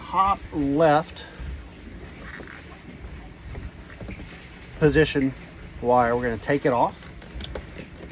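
Plastic connectors click and rattle as hands handle wiring.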